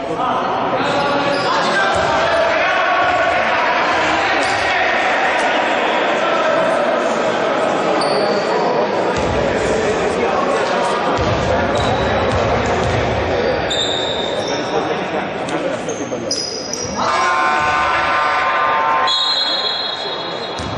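Players and spectators call out and chatter in the echoing hall.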